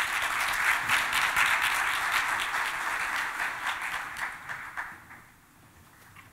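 An audience applauds loudly in a large hall, then the clapping fades away.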